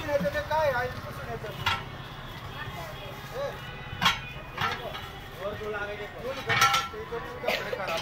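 A steel tyre lever clanks against a truck wheel rim.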